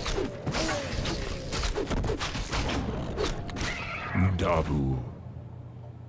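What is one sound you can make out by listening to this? Swords and axes clash in a noisy battle.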